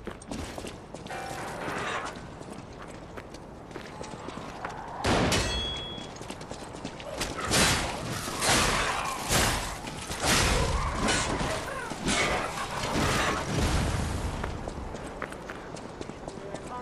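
Footsteps run over wet cobblestones.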